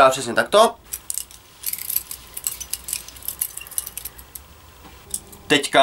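A metal knife clicks and rattles as it is handled.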